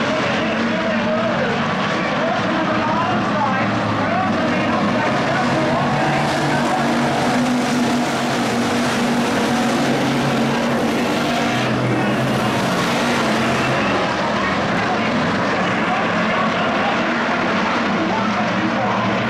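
A pack of V8 stock cars races at full throttle.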